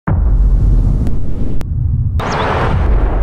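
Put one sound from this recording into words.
A large ocean wave crashes and roars.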